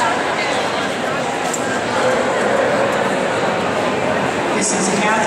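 A woman calls out to a dog with animation in a large echoing hall.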